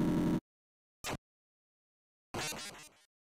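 A brittle electronic crack and shatter sounds.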